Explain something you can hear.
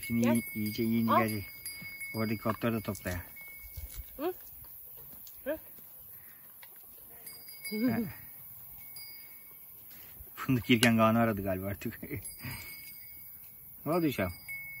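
Sheep bleat loudly nearby, again and again.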